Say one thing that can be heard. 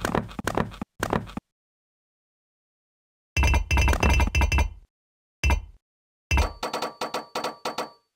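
Game blocks snap into place with short, quick clicking thuds.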